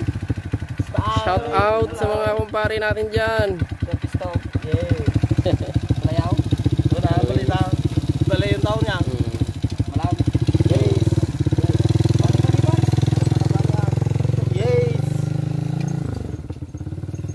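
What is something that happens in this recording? A motorcycle engine idles with a steady putter.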